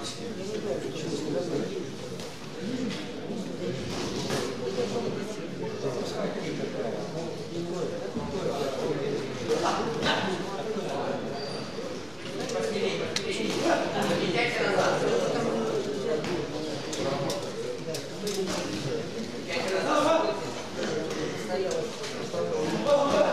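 Boxing gloves thud against each other in quick punches.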